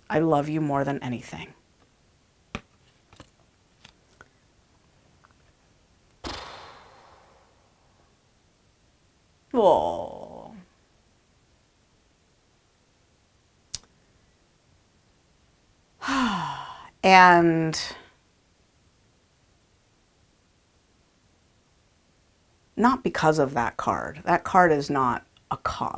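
A woman speaks close to a microphone in short bursts, with long pauses.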